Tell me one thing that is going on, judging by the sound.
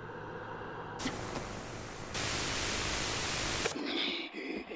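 Loud static hisses steadily, then cuts off.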